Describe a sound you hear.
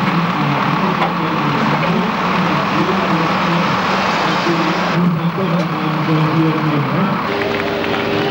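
A pulling tractor's engine roars loudly.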